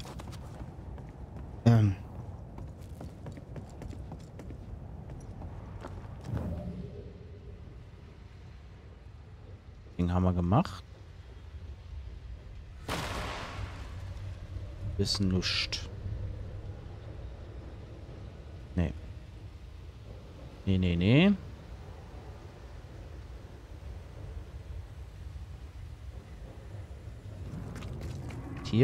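Footsteps thud softly on wooden boards and rough ground.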